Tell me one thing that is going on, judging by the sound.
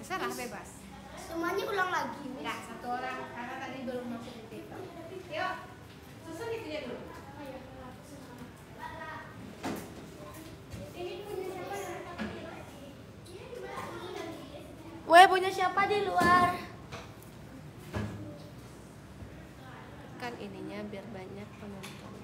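A young girl talks with animation nearby.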